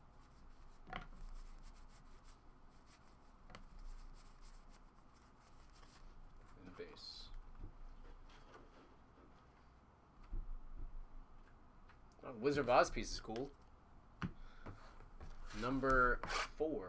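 Cards rustle and flick as they are shuffled by hand.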